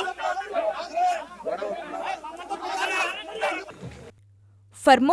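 A crowd of men shout and argue excitedly close by.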